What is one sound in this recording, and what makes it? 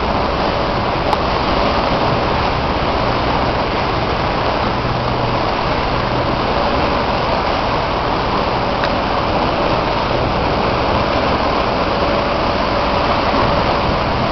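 Wind blows steadily and roughly across the microphone out on open water.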